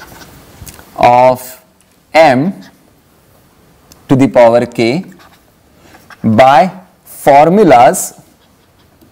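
A man speaks slowly and calmly in short phrases.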